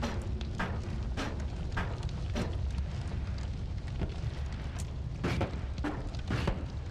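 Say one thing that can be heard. Sharp thuds and cracks of a video game's combat ring out every so often.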